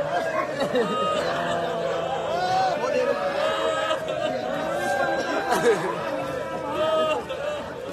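A crowd of men beat their chests in rhythm.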